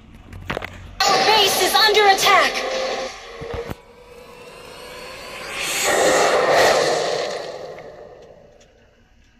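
Video game battle sounds and effects play.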